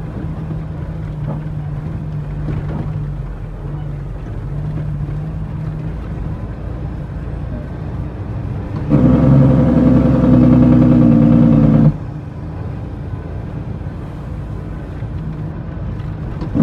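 A vehicle engine rumbles steadily while driving over a rough dirt road.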